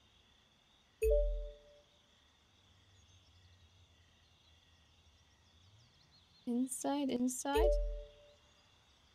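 A short electronic two-note chime sounds twice.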